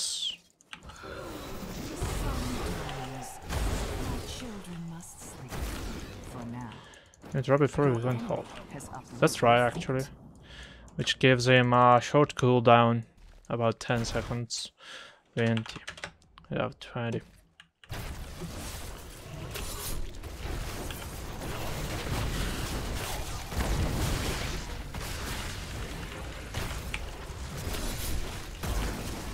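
Game spells and combat effects clash and crackle.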